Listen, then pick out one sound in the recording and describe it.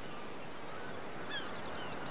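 Gentle waves wash onto a sandy shore.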